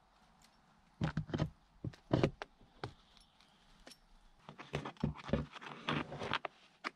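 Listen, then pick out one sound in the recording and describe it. A hand tool scrapes across a stiff hide in short, rasping strokes.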